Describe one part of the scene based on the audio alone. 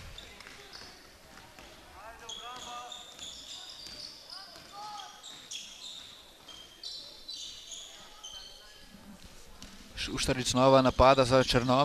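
A basketball bounces on a wooden floor as it is dribbled.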